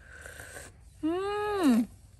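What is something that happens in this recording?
A young woman hums with delight close by, her voice rising and then falling.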